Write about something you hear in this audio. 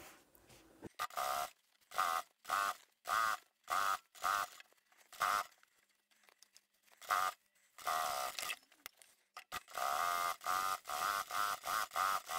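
A sewing machine whirs in short bursts, stitching fabric.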